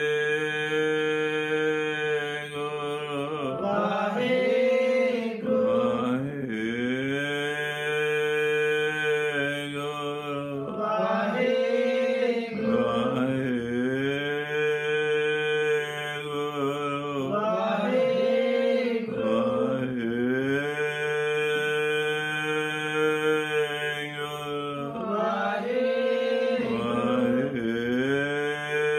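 An elderly man sings a slow, drawn-out chant close by.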